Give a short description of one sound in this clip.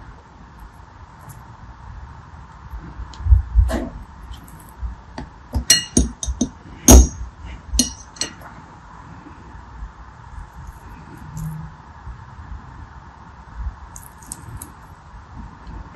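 A knife blade taps and scrapes against soft beads, with crisp clicks and crackles.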